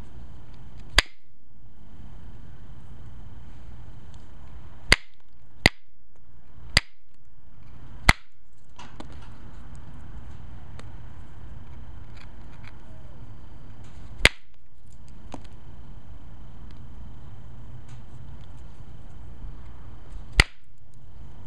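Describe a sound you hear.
A tool presses small flakes off a stone with sharp, sudden clicks.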